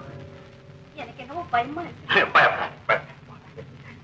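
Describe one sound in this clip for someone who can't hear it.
A woman cries out in distress.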